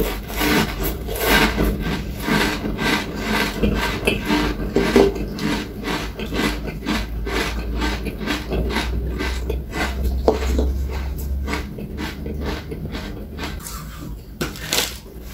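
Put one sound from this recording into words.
A man chews crunchy food loudly, close to a microphone.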